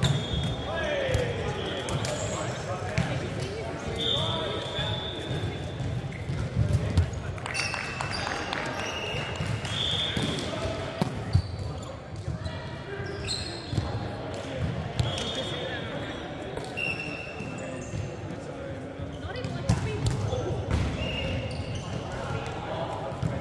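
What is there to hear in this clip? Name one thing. Young men call out and chatter across the hall.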